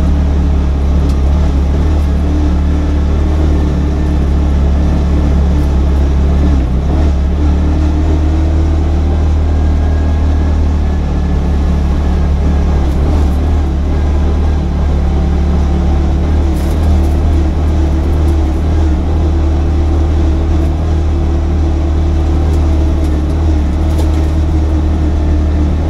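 Tyres squelch and rumble over a muddy dirt road.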